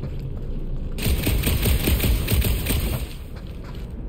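An energy blaster fires in rapid bursts.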